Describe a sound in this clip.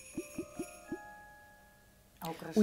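A game chimes with short bright tones.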